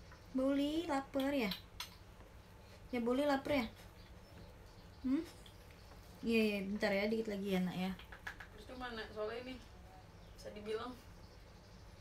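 A young woman talks softly and playfully close by.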